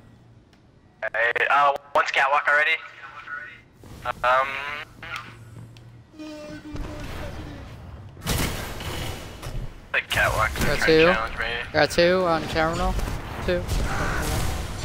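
A young man talks with animation into a headset microphone, close by.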